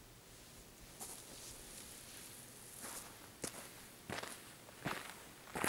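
Clothing rustles close by.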